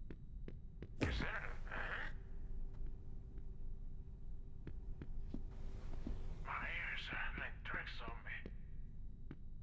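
Air whooshes as a jumping figure leaps off walls.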